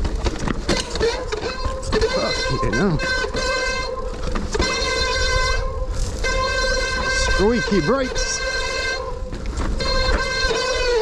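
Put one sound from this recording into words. Bike brakes squeal loudly in long, pitched shrieks.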